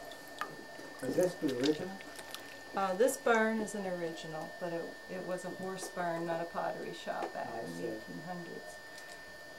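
An adult woman talks calmly nearby.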